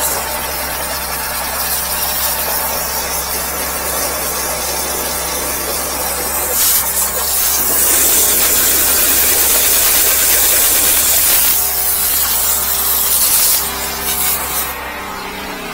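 High-pressure water sprays hard into a drain, hissing loudly.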